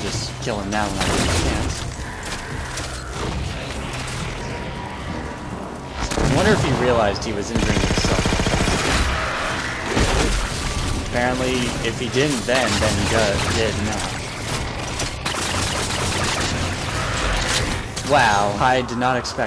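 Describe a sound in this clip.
Futuristic guns fire rapid bursts of energy shots.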